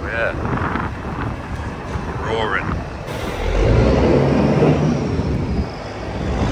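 A heavy truck engine rumbles as the truck drives past.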